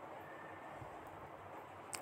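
A rolling pin rolls over dough.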